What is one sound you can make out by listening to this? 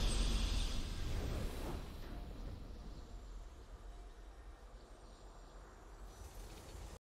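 A triumphant game fanfare sounds and slowly fades.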